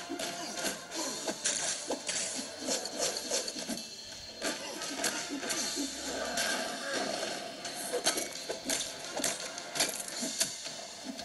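Punches and blows land with sharp thuds and whooshes in a fighting game.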